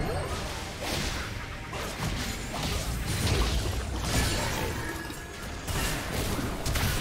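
Magic spells crackle and burst in a busy video game battle.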